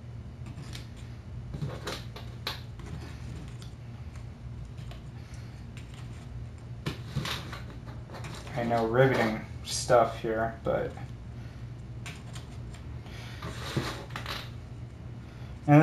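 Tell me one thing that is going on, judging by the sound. Small plastic game pieces click and tap on a table.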